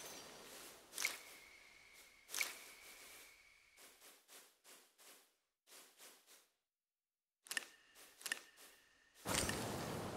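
Menu clicks and short beeps sound one after another.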